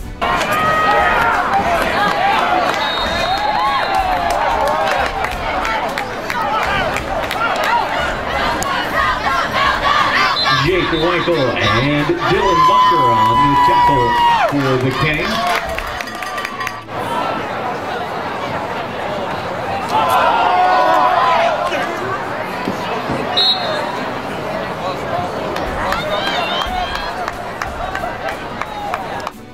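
A crowd of players and spectators shouts and cheers outdoors.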